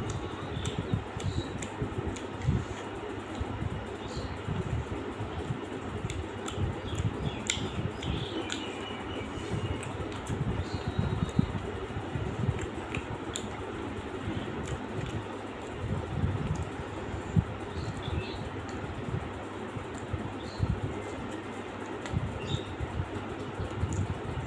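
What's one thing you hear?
A young man chews food noisily close by.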